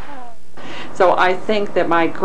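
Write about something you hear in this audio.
An elderly woman speaks calmly up close.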